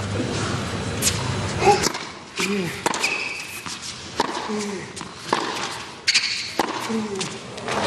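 Tennis balls are struck with sharp pops in a fast rally.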